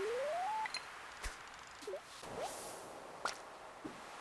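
A short electronic chime sounds as a fish is caught.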